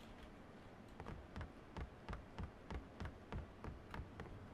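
Heavy footsteps thud steadily across a wooden floor.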